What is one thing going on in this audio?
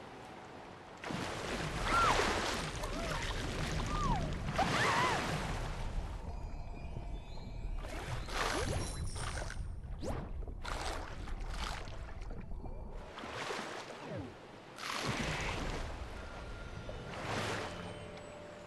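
Water splashes loudly as a shark plunges in.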